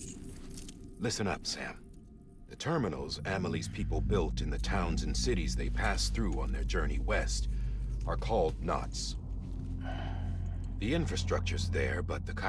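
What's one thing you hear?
A man speaks calmly in a low, gravelly voice.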